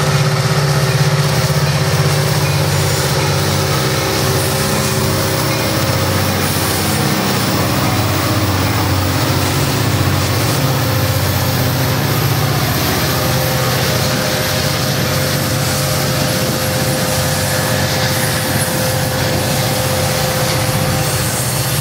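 Steel wheels clatter over rail joints as a double-stack container train rolls by.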